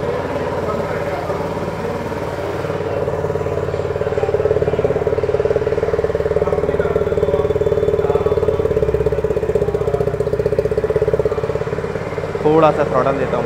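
A motorcycle engine idles with a steady, rapid chugging close by.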